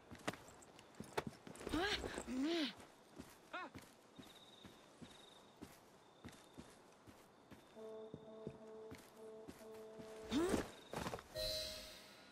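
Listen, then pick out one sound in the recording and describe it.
Footsteps walk slowly over stone.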